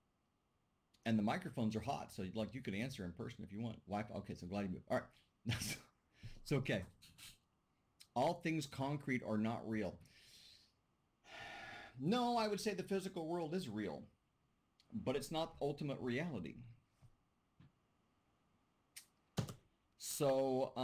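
A middle-aged man speaks calmly through a computer microphone.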